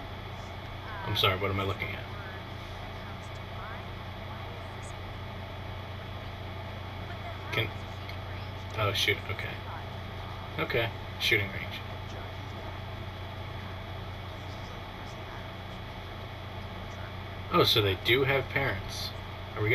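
Another young man answers in a dry, doubtful voice, close by.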